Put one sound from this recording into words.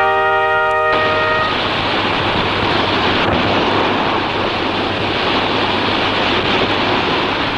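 Waves crash and wash onto a beach.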